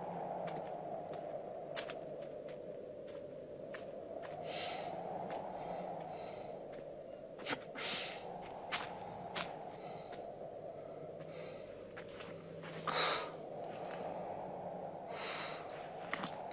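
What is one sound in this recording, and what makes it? Bare feet step on loose stones.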